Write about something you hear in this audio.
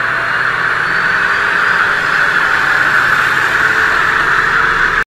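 A freight train rolls steadily past on the tracks.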